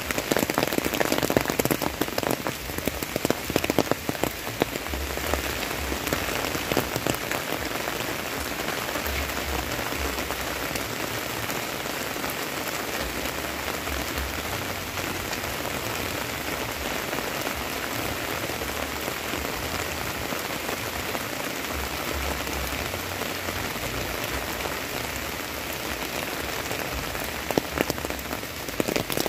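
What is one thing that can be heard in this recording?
Steady rain falls and patters on the ground outdoors.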